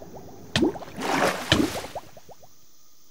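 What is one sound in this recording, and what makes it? Water splashes as something plunges in.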